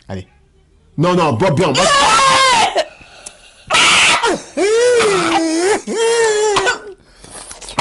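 A young woman shrieks and wails loudly close by.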